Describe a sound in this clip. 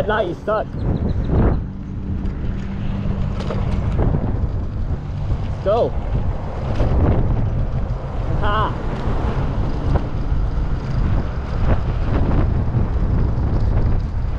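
Scooter wheels roll and rattle over pavement.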